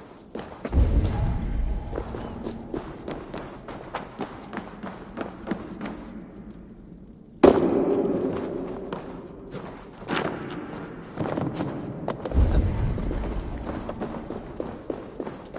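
Footsteps thud quickly on hard ground and wooden boards.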